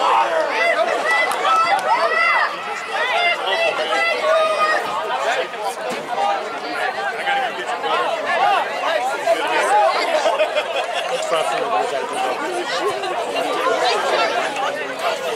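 A crowd of spectators chatters and calls out close by, outdoors.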